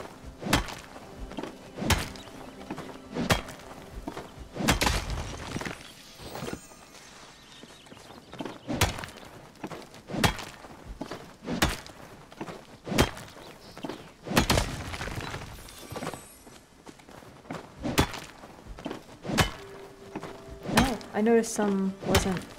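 A pickaxe strikes stone and wood with sharp, repeated knocks.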